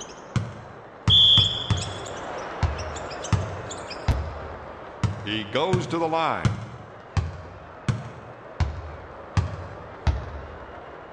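A basketball bounces steadily on a hardwood floor.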